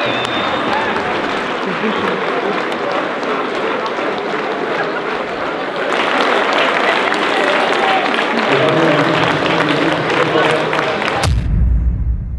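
A stadium crowd cheers and chatters noisily outdoors.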